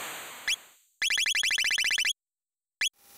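A rapid run of electronic ticking sounds plays.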